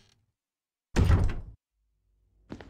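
A heavy door thuds shut.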